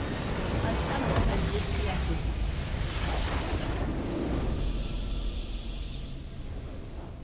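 A loud explosion roars and crackles, then fades.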